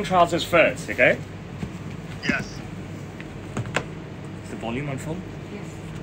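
A stiff fabric sample book thumps softly onto a counter.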